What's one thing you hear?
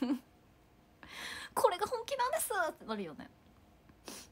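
A young woman speaks playfully close to a microphone.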